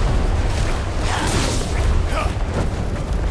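A large creature screeches.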